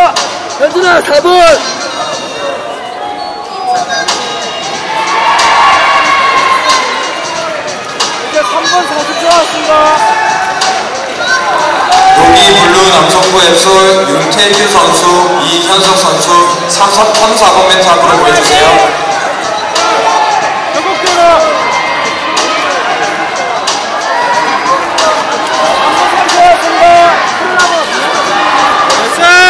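Several men shout loud instructions and encouragement in a large echoing hall.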